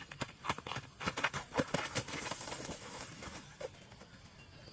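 A person falls heavily onto dry leaves with a rustling crash.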